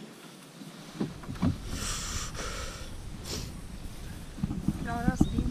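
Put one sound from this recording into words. A plastic kayak knocks and bumps against a wooden dock.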